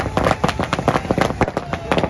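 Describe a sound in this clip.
A fountain firework hisses and sprays sparks.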